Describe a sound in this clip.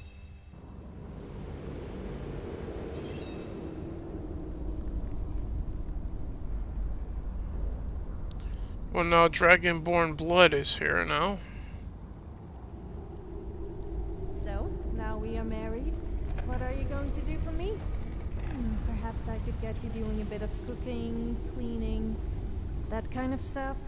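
Magical fire roars with a low, steady rumble.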